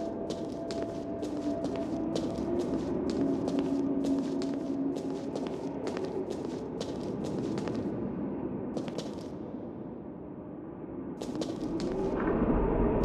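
Footsteps tap steadily on a hard stone floor in a large echoing hall.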